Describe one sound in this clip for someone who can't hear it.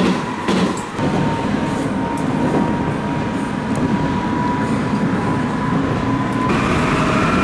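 A train's motor hums and slowly rises in pitch as the train picks up speed.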